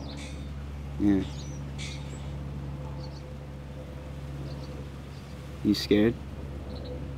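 A young man speaks softly nearby.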